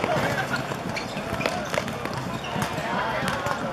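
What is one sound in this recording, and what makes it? A football is kicked hard outdoors.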